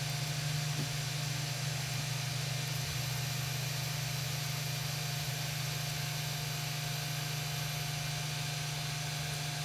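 Stepper motors hum and whine as a printer bed slides.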